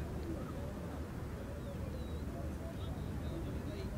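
A cricket bat strikes a ball.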